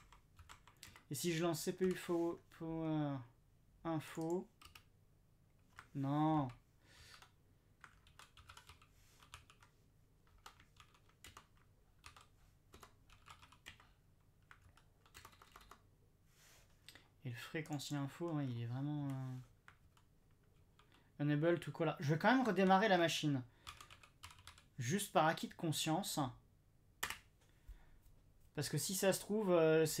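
Keys click on a keyboard.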